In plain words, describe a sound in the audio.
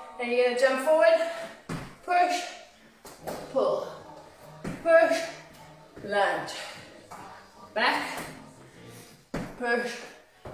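Feet thud during jumps.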